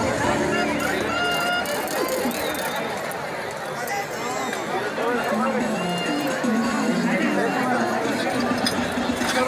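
A large crowd chatters all around in a wide open stadium.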